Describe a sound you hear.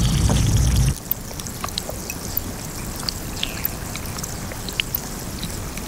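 Shallow water trickles and laps softly.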